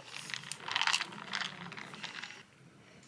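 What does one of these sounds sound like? A person slurps through a straw.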